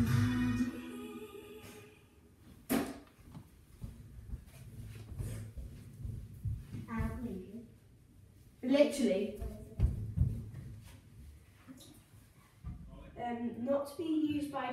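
A young girl speaks with animation close by, in a small echoing room.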